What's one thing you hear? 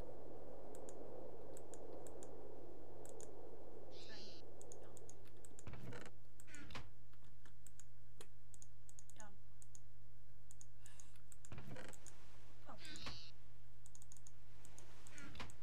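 Short soft clicks sound as items are picked and placed in a game menu.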